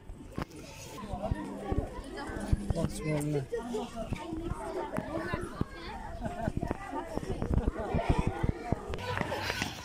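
Children chatter and call out excitedly nearby, outdoors.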